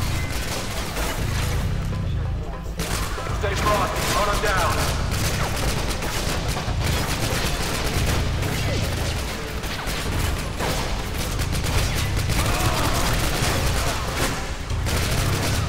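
Rapid rifle gunfire crackles in short bursts.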